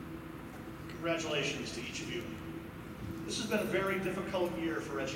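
A young man speaks calmly through a microphone in an echoing hall.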